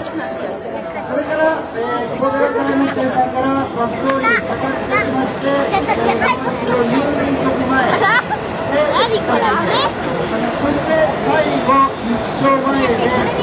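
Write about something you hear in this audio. A festival crowd of men and women chants together in rhythm outdoors.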